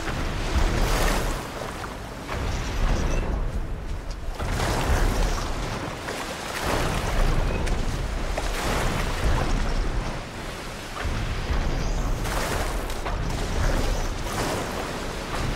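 Water splashes and churns heavily in bursts.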